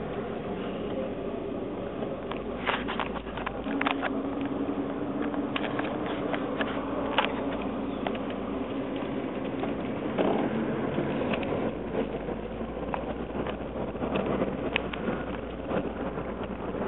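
Fabric rustles and scrapes against a phone held close.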